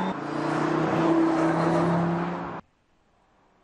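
A car engine roars loudly as a car speeds past close by.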